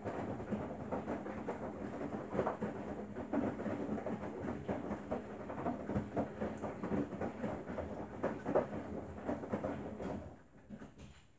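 A front-loading washing machine's drum tumbles wet laundry with sloshing water.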